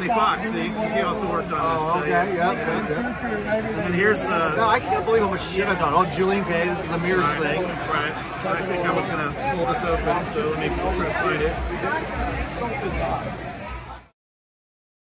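Men talk with each other close by.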